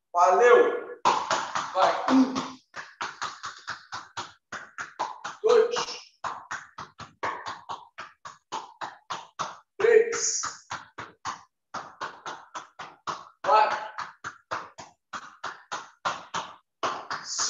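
A basketball bounces quickly and steadily on a hard floor.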